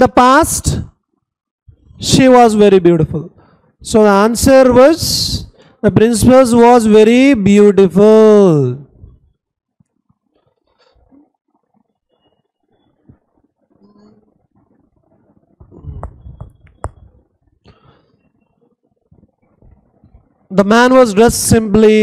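A man speaks clearly into a close microphone, explaining at an even pace.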